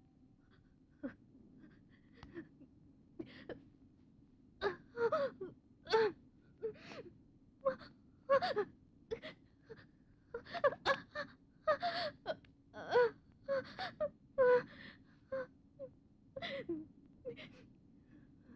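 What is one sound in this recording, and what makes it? A young woman gasps and moans in pain close by.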